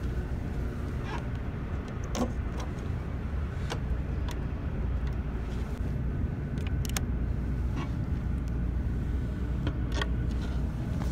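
A folding table clicks and knocks as a hand handles it.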